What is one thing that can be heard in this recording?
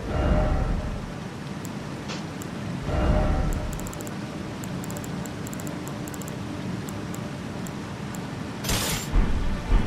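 Soft menu clicks tick quickly.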